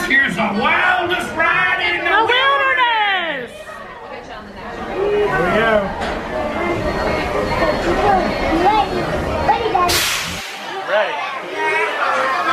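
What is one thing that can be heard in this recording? Young children shout and squeal excitedly close by.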